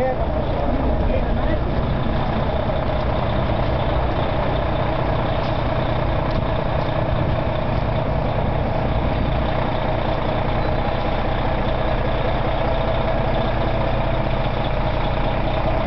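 A fire engine's motor idles with a steady low rumble.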